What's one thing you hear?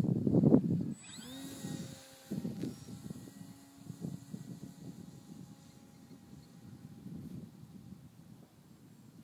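A model plane's engine whines overhead and fades into the distance.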